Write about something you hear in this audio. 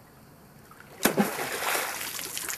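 Water splashes loudly as something hits the stream.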